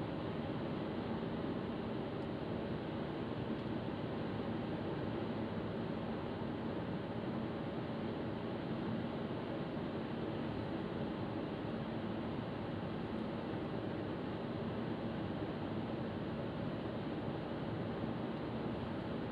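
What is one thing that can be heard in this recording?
A car's engine hums steadily from inside the cabin.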